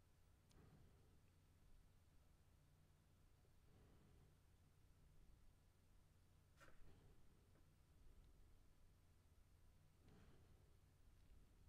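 A man breathes softly close to a microphone.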